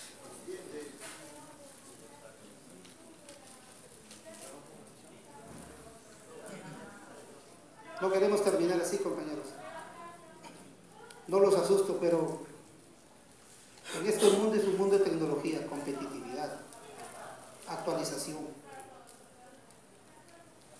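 A man speaks through a microphone in a large echoing hall, presenting calmly.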